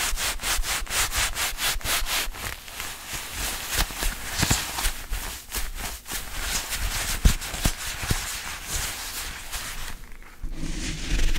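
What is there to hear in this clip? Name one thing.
Leather gloves creak and squeak as hands rub together close to a microphone.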